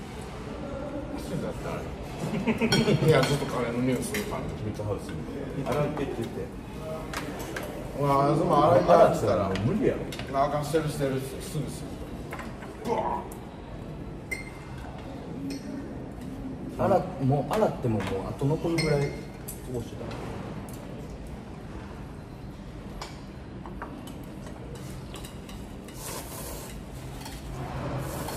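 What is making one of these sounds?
Chopsticks and spoons clink against bowls and plates.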